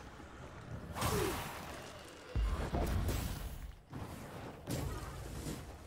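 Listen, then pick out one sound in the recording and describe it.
A magic blast whooshes and crackles.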